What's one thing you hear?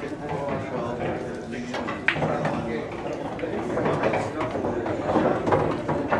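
Pool balls click sharply against each other.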